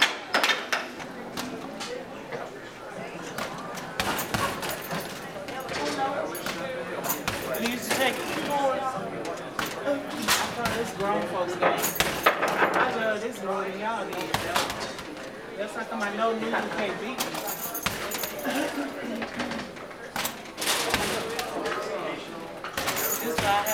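Basketballs thud against a backboard and rattle through a hoop.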